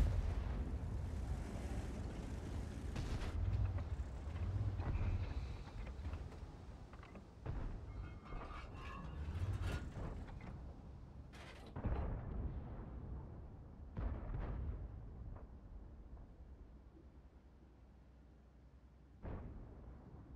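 Tank cannons boom with heavy blasts.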